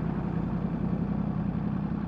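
A heavy truck rumbles past.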